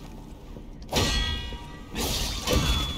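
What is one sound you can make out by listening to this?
Metal strikes ring out sharply.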